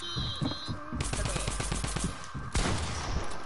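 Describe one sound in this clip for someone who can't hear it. A gun fires a quick burst of shots.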